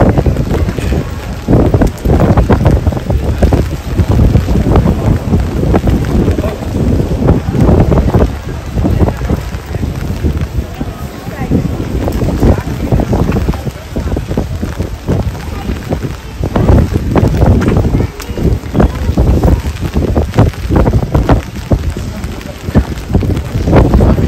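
Rain patters on an umbrella overhead.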